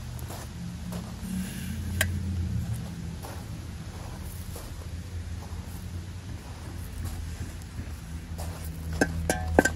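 Sand and small stones pour and patter onto a pile of rocks.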